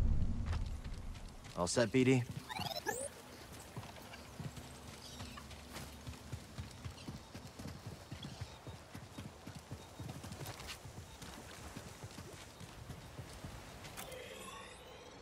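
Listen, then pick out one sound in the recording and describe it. Footsteps run quickly over dirt and stone.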